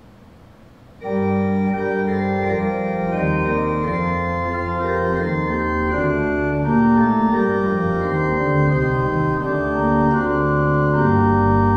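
A pipe organ plays a hymn with full, sustained chords in a large echoing church.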